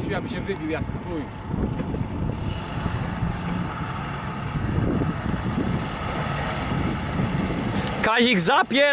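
A tractor engine rumbles steadily in the distance outdoors.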